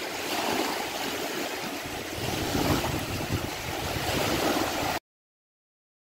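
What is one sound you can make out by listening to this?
Waves lap and splash against a wooden dock.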